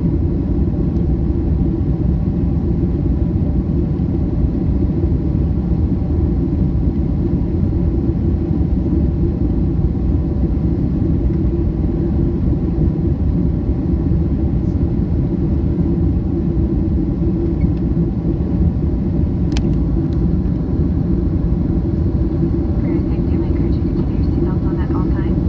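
A jet engine roars steadily in the cabin of a flying plane.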